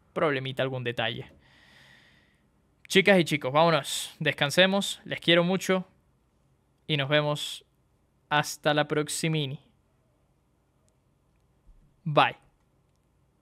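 A young man talks with animation close to a microphone, in short bursts with pauses.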